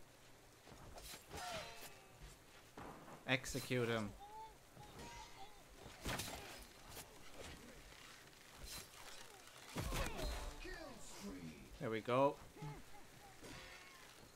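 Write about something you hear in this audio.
Bowstrings twang as arrows are loosed.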